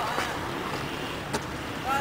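A skateboard rolls over concrete.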